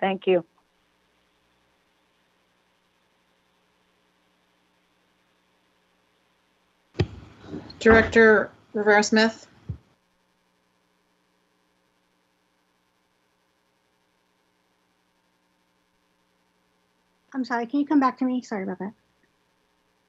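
A woman speaks calmly over an online call, in short bursts with long pauses.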